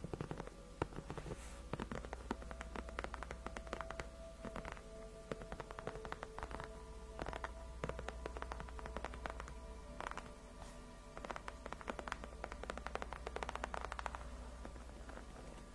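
Long fingernails tap and scratch on a leather surface close to a microphone.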